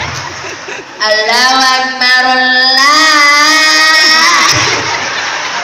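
A young man chants in a long, drawn-out melody through a loudspeaker.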